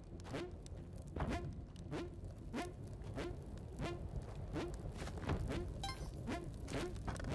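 Chiptune video game music plays with a steady, bouncy beat.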